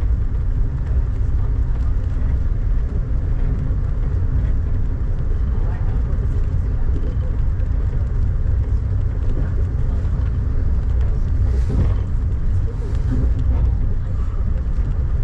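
Rain patters against a window.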